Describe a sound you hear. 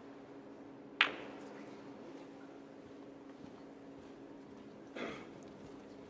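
Snooker balls knock together with a sharp click.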